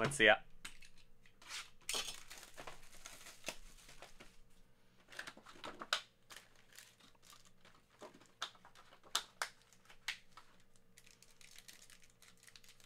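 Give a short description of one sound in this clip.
Plastic wrapping crinkles and rustles as hands tear open a box.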